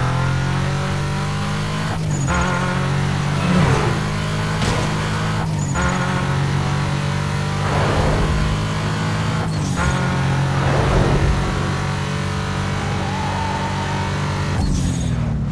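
A car engine roars at high speed, dropping briefly at each gear change.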